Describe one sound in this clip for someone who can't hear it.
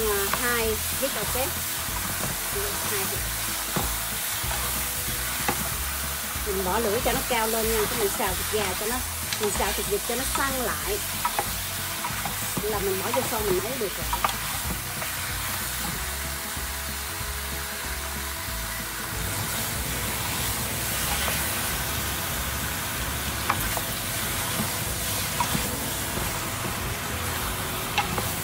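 Meat sizzles in a hot pan.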